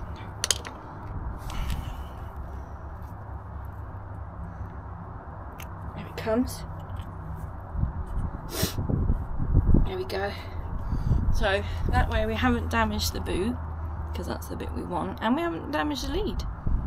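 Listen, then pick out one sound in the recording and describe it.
Small plastic parts click and rustle in a woman's hands.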